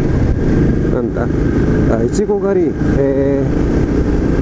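A motorcycle engine revs sharply as the rider shifts gears.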